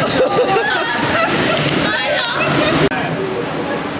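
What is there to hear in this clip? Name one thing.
Water splashes loudly over a ride boat.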